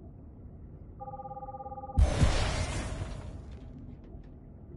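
A held tone hums and then bursts into a rushing whoosh.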